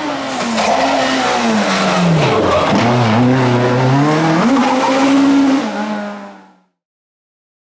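A rally car engine revs hard and shifts gears as the car speeds past close by.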